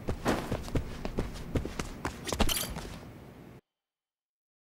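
Footsteps tap on a stone floor in an echoing hall.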